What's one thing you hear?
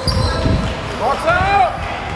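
Sneakers squeak sharply on a wooden court in a large echoing gym.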